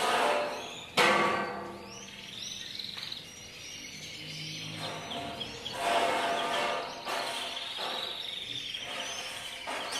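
A metal frame knocks and rattles as it is moved.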